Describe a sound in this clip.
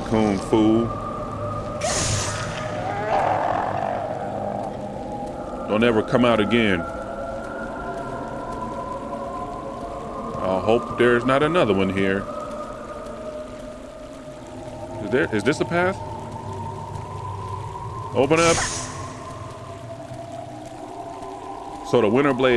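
A man talks in short bursts close to a microphone.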